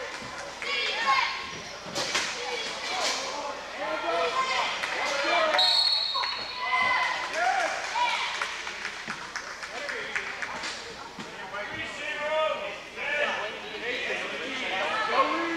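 Men shout and call out across a large echoing gym.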